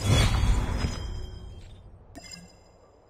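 A game reward fanfare sounds loudly and fades.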